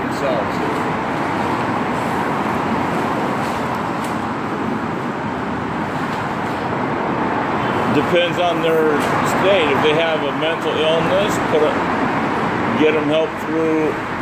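Traffic roars steadily on a nearby road.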